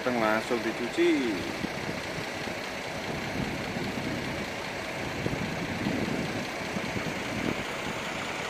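A bus engine idles steadily nearby.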